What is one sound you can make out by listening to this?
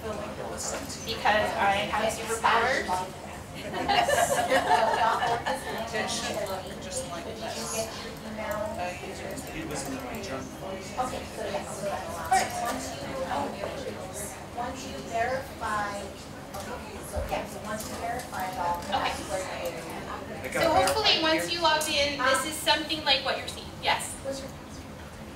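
A middle-aged man speaks at a lectern, heard in a room with some echo.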